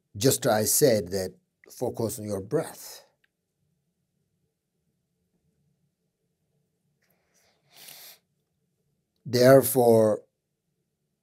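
A middle-aged man speaks calmly and closely into a microphone, with long pauses.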